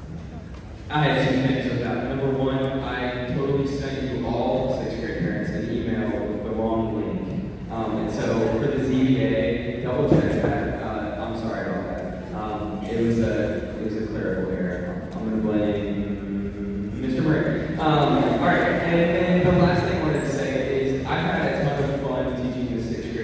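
A large band plays music in an echoing hall.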